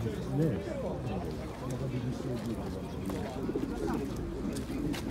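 Pigeons coo softly and steadily close by.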